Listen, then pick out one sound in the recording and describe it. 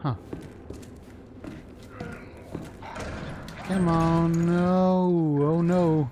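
A metal locker door creaks open.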